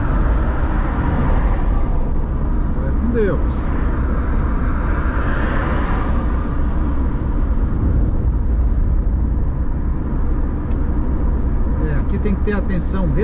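Tyres roll steadily over asphalt with a low engine rumble.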